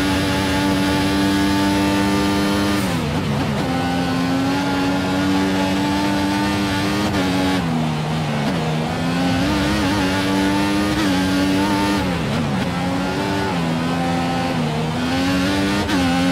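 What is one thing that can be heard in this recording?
A racing car engine screams at high revs, dropping in pitch as it shifts down for corners and climbing again.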